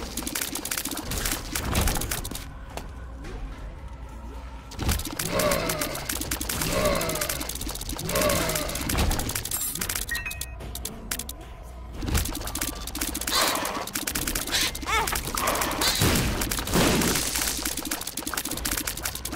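Rapid shooting and splattering game sound effects play throughout.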